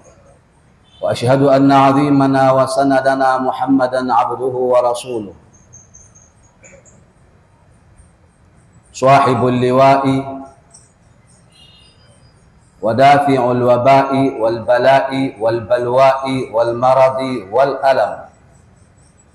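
A man speaks loudly and with emphasis into a microphone, in bursts with pauses.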